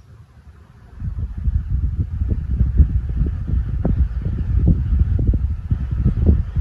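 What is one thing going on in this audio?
Air from a fan rumbles loudly against the microphone.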